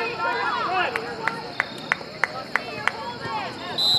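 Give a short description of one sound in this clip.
Hands clap several times in a sharp run.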